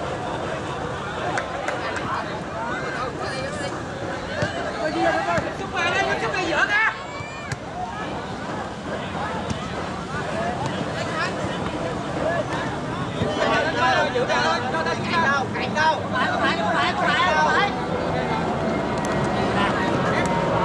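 A crowd of spectators chatters and cheers loudly outdoors.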